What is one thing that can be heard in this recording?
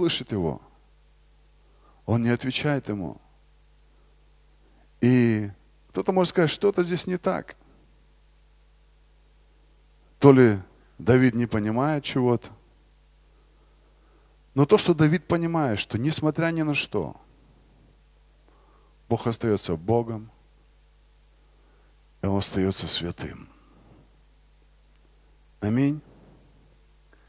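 A man speaks through a microphone in short bursts with long pauses, calmly and earnestly.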